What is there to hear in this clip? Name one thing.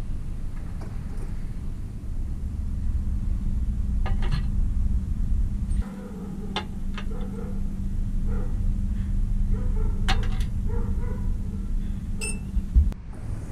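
Pliers click and scrape against small metal clips.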